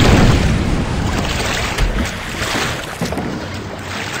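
Oars splash softly as a small boat is rowed through calm water.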